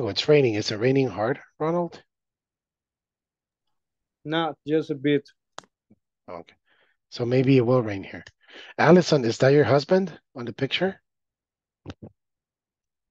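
A man speaks calmly over an online call, pausing between phrases.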